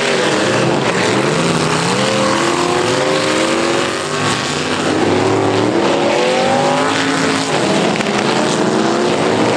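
Several car engines roar and rev loudly, rising and falling in pitch.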